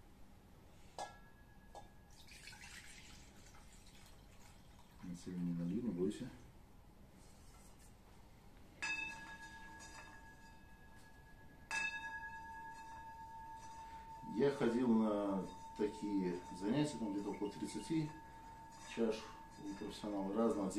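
A metal singing bowl is struck and rings on with a long, steady tone.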